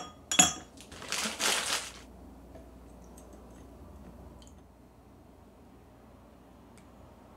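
Liquid pours and splashes onto ice in a glass.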